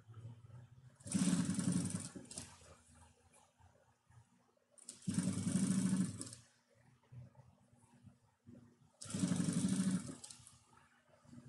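A sewing machine stitches in short bursts.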